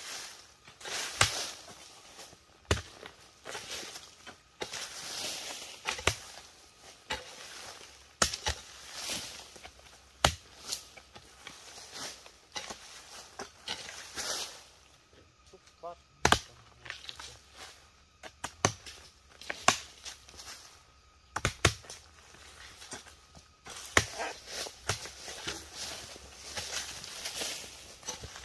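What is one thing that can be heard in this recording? Hoes strike and scrape dry earth in repeated blows.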